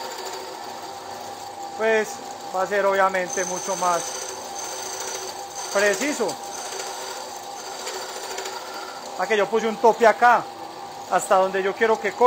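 A band saw blade cuts through wood.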